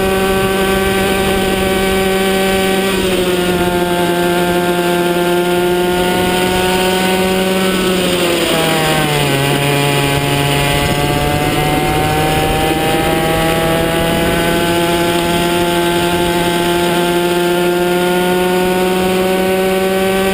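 A kart engine buzzes loudly up close, dropping in pitch into a corner and climbing again on the straight.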